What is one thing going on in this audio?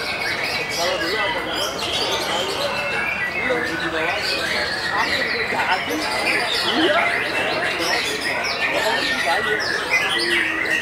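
A songbird sings loud, varied whistles and chirps close by.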